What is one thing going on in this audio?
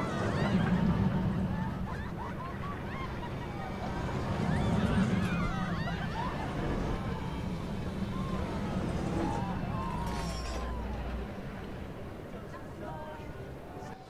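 A roller coaster train rumbles steadily along its track.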